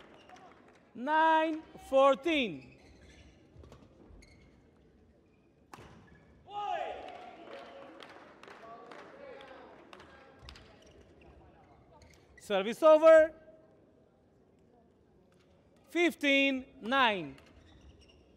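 Young women shout loudly in a large echoing hall.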